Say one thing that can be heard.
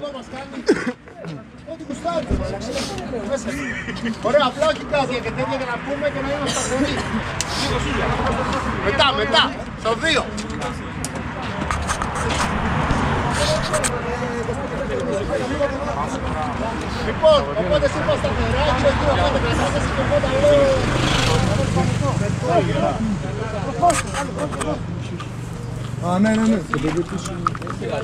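Several young men talk and call out outdoors at night.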